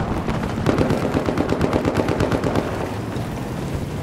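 Flames roar and crackle nearby.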